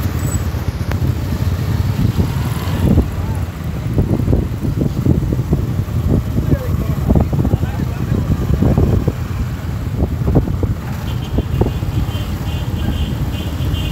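Motorcycle engines rumble as they ride past close by.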